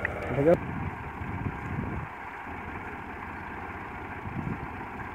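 A tractor engine idles with a steady, low rumble outdoors.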